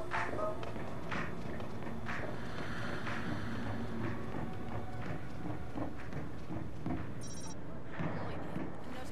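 Footsteps thud steadily up a stairway.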